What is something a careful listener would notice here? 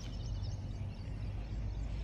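A dog laps water.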